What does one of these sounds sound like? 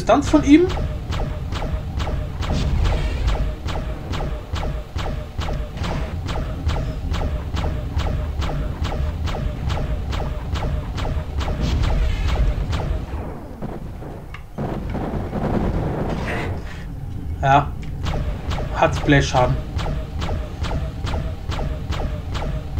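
A game weapon fires rapid magic shots.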